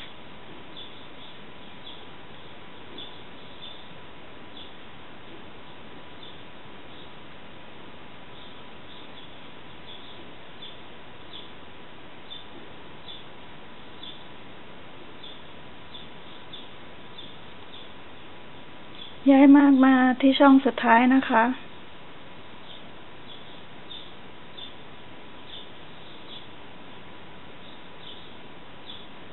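A crochet hook softly ticks and rustles through yarn.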